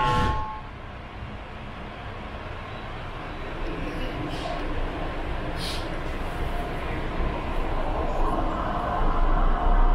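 A train rumbles steadily as it moves along the tracks.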